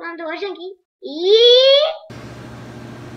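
A young girl squeals in a high voice.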